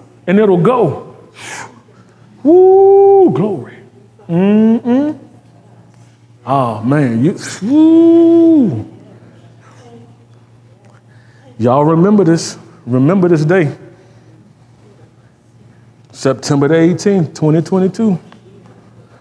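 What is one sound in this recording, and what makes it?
A man speaks expressively in bursts, with long drawn-out sounds and pauses.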